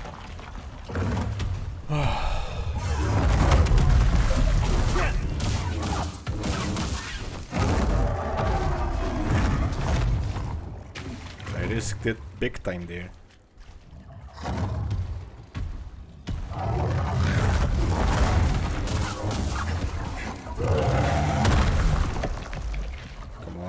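Energy blades hum and swoosh through the air.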